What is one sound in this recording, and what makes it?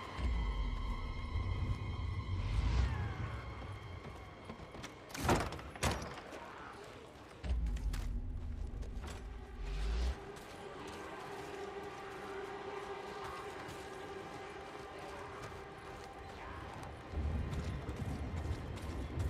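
Footsteps crunch over wooden boards and debris.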